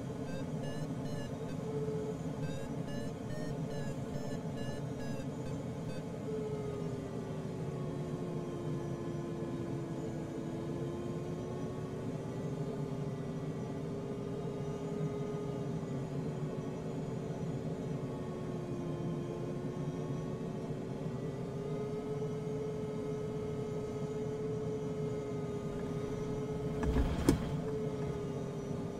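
Wind rushes steadily past a glider's cockpit.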